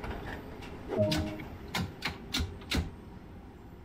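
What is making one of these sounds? Cab switches click several times.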